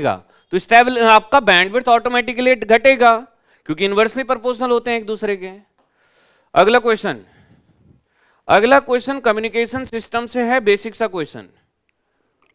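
A man lectures with animation through a close microphone.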